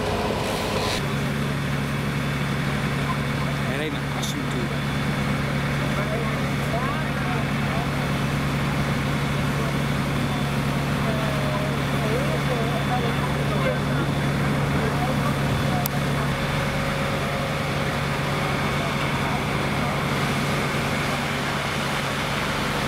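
Water hisses from a high hose jet.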